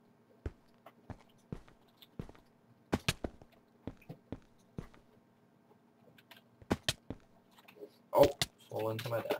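Blocks are placed with short, soft knocks.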